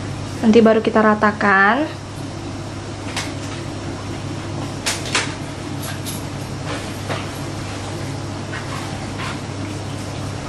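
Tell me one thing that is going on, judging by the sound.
A spoon scoops and plops soft batter into paper cups.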